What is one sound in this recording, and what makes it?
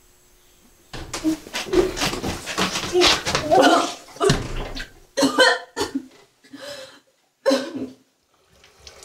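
A young woman retches and vomits loudly.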